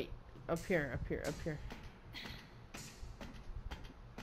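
Hands and feet clank on metal ladder rungs during a climb.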